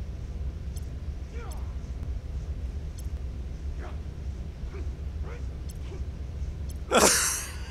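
Soft electronic ticks sound as a menu scrolls.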